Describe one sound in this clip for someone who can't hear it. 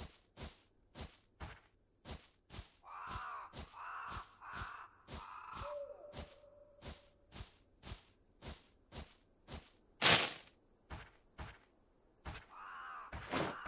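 Footsteps tread steadily through grass and undergrowth.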